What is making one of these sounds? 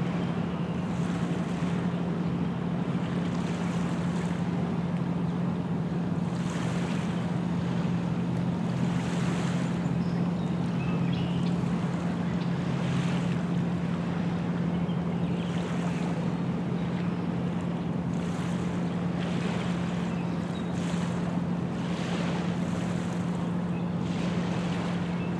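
Small waves lap gently against a shore.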